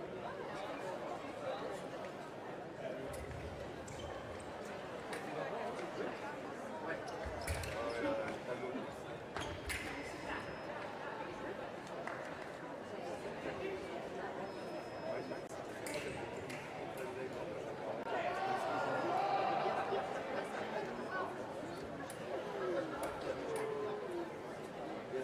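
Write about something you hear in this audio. Fencing blades clash and click sharply.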